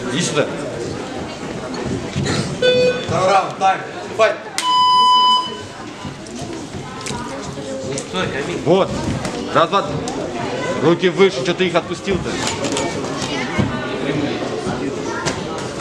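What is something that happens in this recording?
A crowd of men and children chatter and shout in a large echoing hall.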